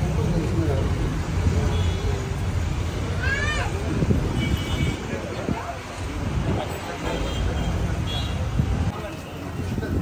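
Traffic hums in the street.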